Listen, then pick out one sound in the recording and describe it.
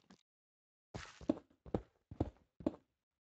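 A pickaxe chips at stone blocks in quick repeated blows.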